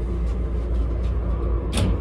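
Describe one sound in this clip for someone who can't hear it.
A sliding door latch clicks.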